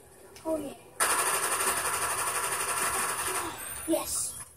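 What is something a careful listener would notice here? A rapid burst of automatic gunfire rattles from a video game through speakers.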